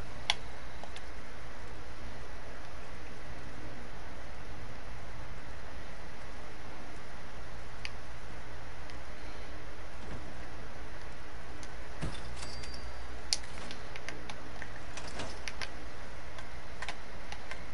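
Short menu clicks sound now and then as items are picked.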